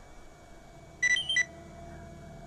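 A short bright electronic chime sounds twice in quick succession.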